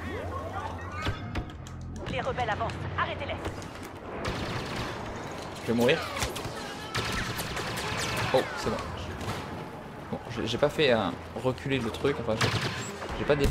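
Blaster rifles fire in sharp bursts.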